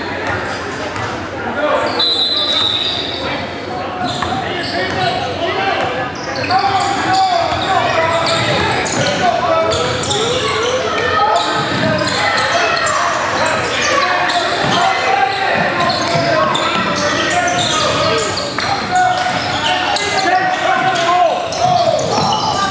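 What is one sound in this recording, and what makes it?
Players shout and call out to each other in an echoing gym.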